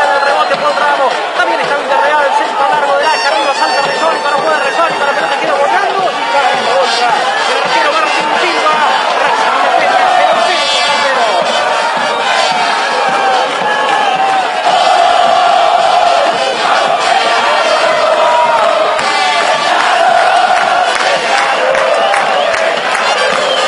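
A large crowd sings and chants loudly outdoors.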